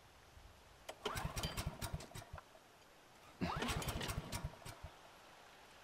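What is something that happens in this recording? A small petrol generator sputters as someone tries to pull-start it.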